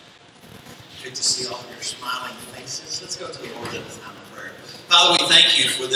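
Men and women chat at a distance in a large, echoing hall.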